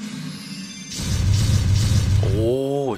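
Explosions burst in quick succession.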